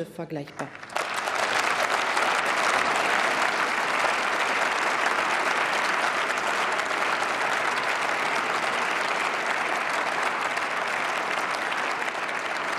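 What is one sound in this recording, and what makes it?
A large crowd applauds steadily in a large hall.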